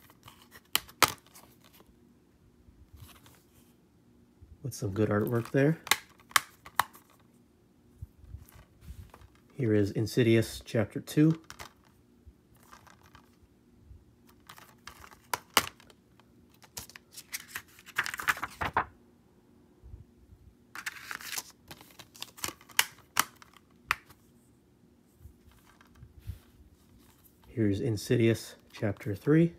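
Plastic cases rattle and tap as hands handle them.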